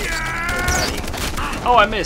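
A gun fires a loud shot nearby.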